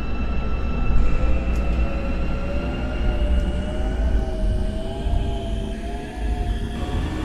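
A train's electric motor whines, slowly rising in pitch.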